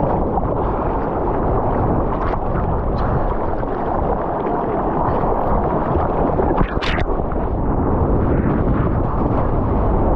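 Water splashes and rushes against a paddled surfboard.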